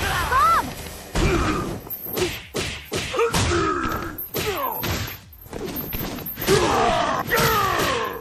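Punches and kicks land with sharp thuds in a fighting game.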